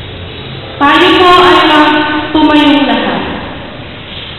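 A young woman sings into a microphone, heard through a loudspeaker in an echoing hall.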